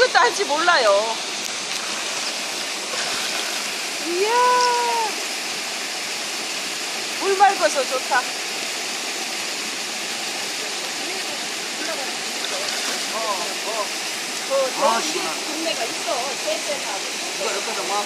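Water splashes gently.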